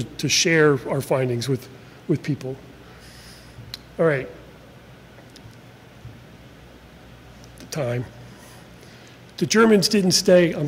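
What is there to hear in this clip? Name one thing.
A man speaks calmly into a microphone, in bursts with pauses, in an echoing room.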